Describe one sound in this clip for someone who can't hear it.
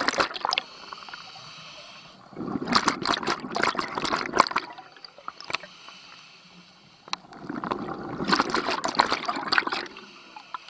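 A diver's breathing regulator hisses underwater.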